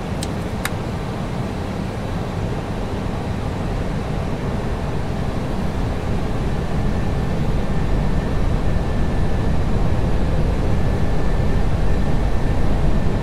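A low roar of engines and rushing air fills a jet airliner cockpit in flight and slowly grows louder.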